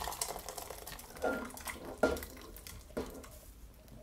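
Food is poured from a pot into a bowl.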